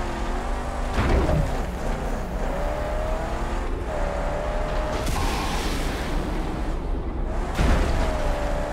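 A car lands hard with a heavy thud.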